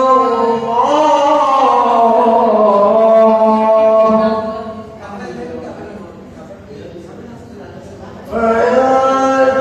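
A young man chants melodically into a microphone, amplified and echoing.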